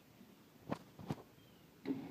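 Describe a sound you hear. A key clicks in an ignition switch.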